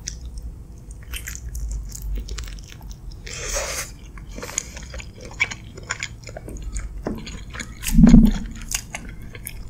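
A woman chews food wetly and close to a microphone.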